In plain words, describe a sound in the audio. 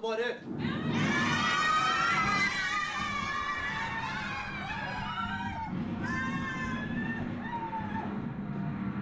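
A young girl sings loudly in a high voice.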